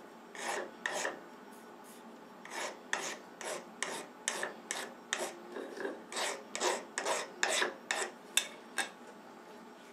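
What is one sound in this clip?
A hand file scrapes across metal in quick, even strokes.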